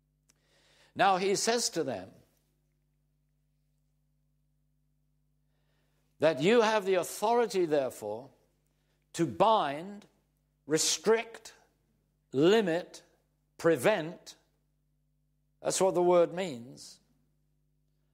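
An elderly man speaks calmly and clearly into a close microphone, in short phrases with pauses.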